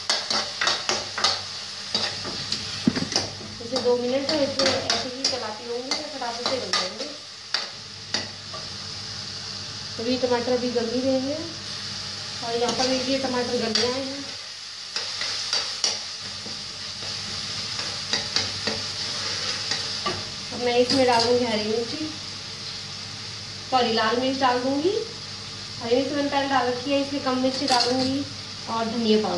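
Food sizzles in a frying pan.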